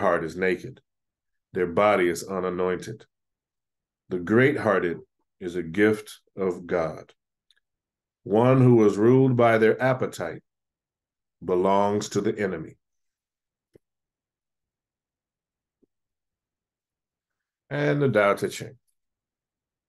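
A middle-aged man reads aloud calmly into a close microphone, with pauses.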